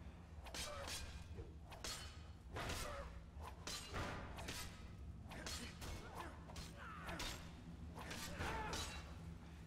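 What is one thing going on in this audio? Metal weapons clash and strike repeatedly in a fight.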